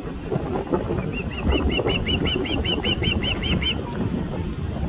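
An osprey calls with a run of high whistled chirps.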